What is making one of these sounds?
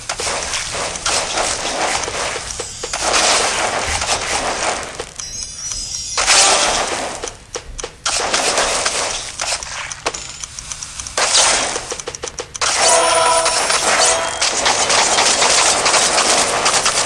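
Swift whooshing slices cut through the air.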